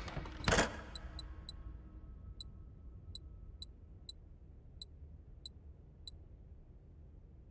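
Menu clicks tick quickly in short bursts.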